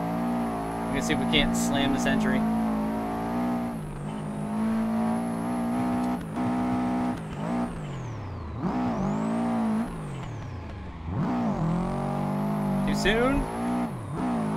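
Tyres screech loudly in short bursts.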